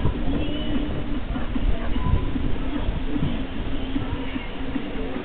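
A train rumbles faintly in the distance as it approaches.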